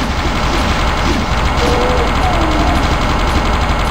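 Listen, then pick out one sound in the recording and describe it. Monsters growl and shriek.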